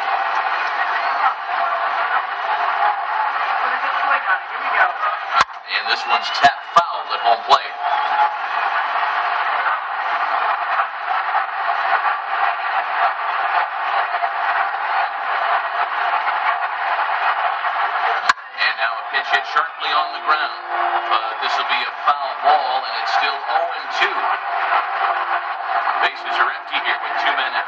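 A large stadium crowd murmurs and cheers through a small loudspeaker.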